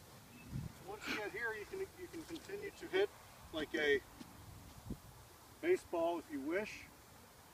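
A man talks outdoors, close by.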